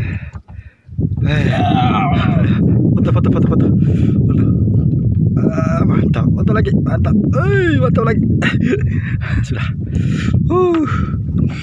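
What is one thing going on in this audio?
A man talks with animation close by, outdoors in wind.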